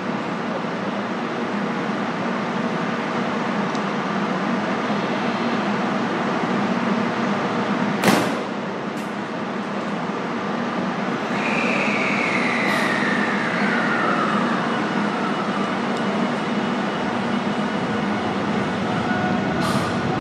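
A train engine idles with a steady low hum.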